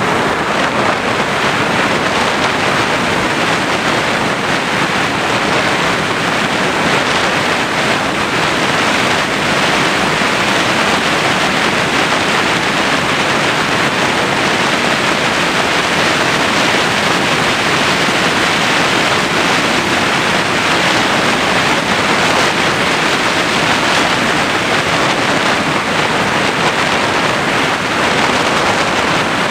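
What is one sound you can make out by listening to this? Wind rushes loudly and steadily past a small aircraft in flight.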